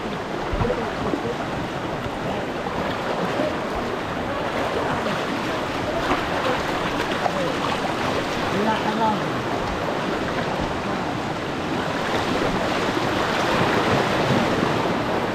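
Young men call out faintly over the rushing water.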